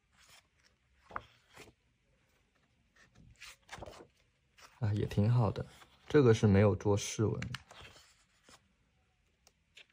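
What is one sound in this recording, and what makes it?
Paper pages rustle as they are turned.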